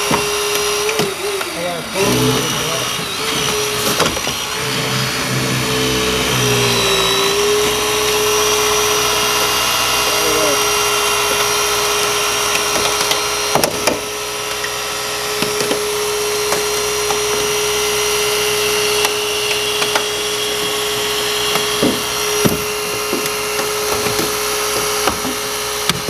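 A hydraulic rescue tool's engine drones steadily.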